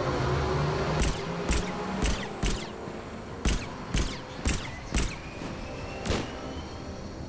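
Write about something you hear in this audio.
Gunshots ring out in quick bursts.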